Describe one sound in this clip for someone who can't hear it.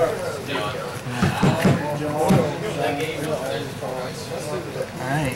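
Playing cards riffle and slide as a deck is shuffled by hand.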